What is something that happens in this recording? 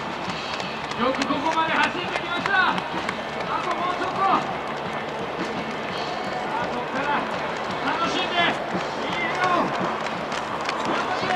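Spectators cheer and call out to the runners nearby.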